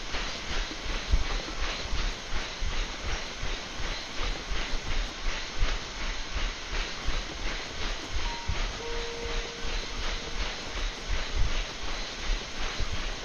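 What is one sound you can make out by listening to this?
Footsteps pound steadily on a treadmill belt.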